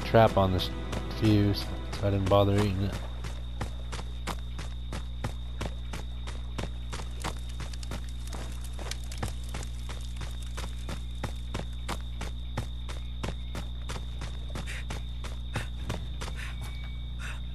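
Quick footsteps run over dirt and leaves.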